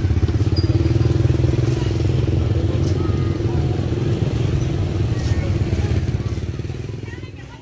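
A motorbike engine rumbles nearby.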